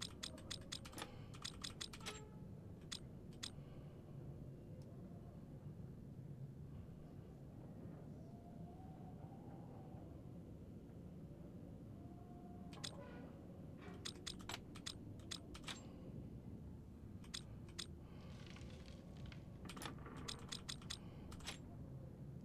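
Metal dials click as they turn, in quick bursts.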